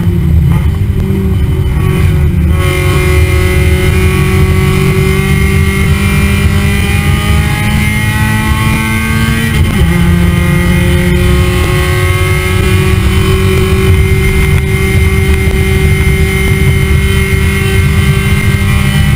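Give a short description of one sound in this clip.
A race car engine roars loudly, its pitch climbing as it speeds up and dropping sharply at a gear change.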